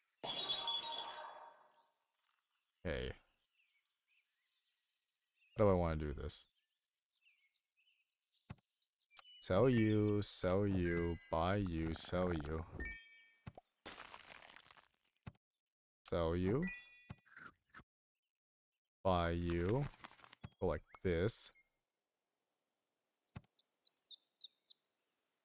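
Short cartoonish game sound effects chime and pop.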